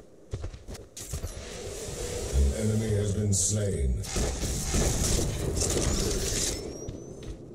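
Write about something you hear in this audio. Video game weapons fire and energy blasts crackle.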